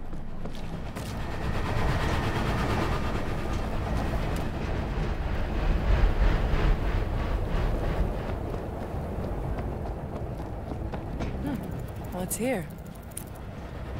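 Footsteps run across metal grating.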